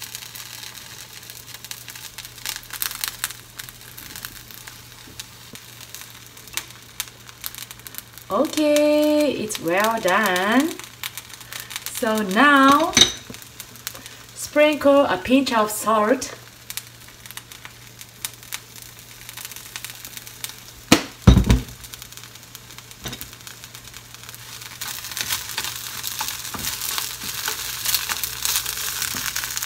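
Leeks sizzle in a frying pan.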